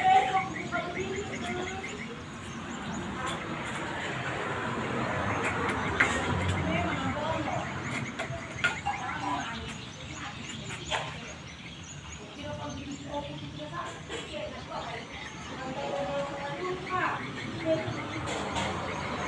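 A trowel scrapes wet mortar against a wall.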